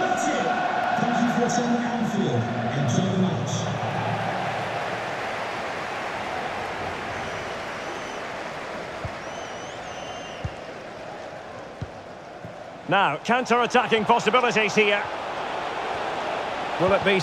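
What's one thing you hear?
A large stadium crowd chants and roars steadily.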